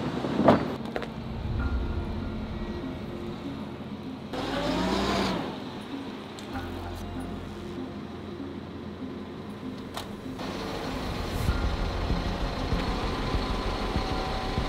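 A heavy truck's diesel engine rumbles steadily.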